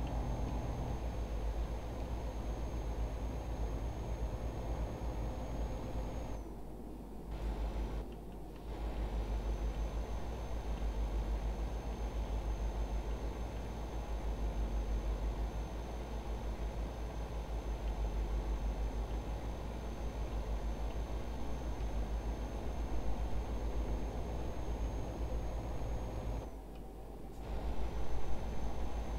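Tyres hiss on a road.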